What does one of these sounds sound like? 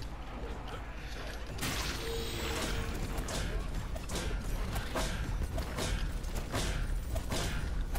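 Video game weapon blasts and impact effects burst during a fight.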